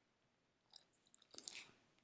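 A dog licks its lips.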